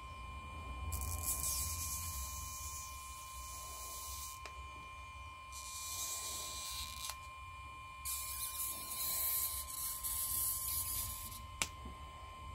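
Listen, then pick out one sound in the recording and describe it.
A sticky strip scrapes and rasps as it is pulled out.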